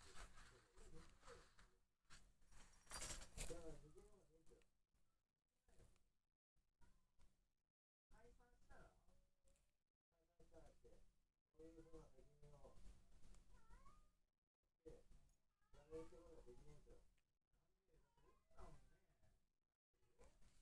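A kitten bats a light toy ball across a soft mat, rustling it.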